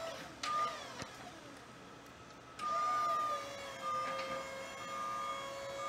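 A warning alarm beeps repeatedly.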